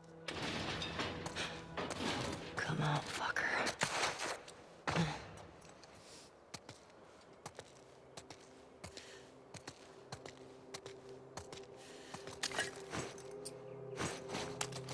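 Footsteps crunch softly over debris.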